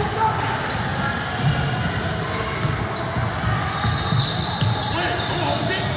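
A basketball bounces on a wooden court in a large echoing gym.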